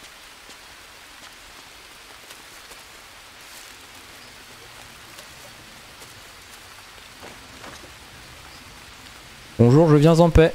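Footsteps crunch slowly over leaves and soil.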